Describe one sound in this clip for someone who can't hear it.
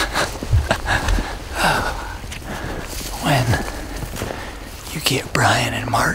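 A bearded man talks to himself close to a microphone outdoors.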